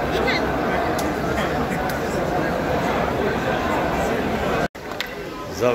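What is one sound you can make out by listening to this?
A large crowd murmurs and chatters in an echoing hall.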